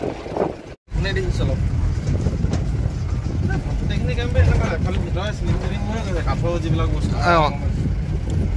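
A man talks nearby inside a vehicle.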